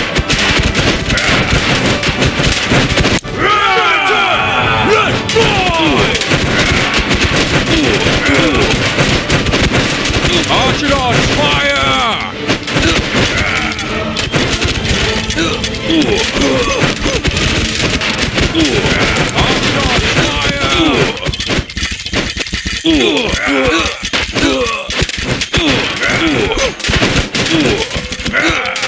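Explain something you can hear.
Swords clash and clang in a busy battle.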